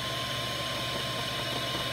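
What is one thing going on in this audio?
A hot air tool blows with a steady hiss.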